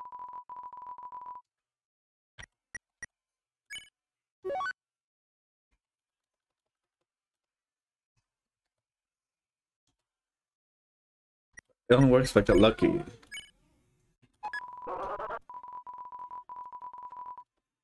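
Rapid beeping blips sound as text types out.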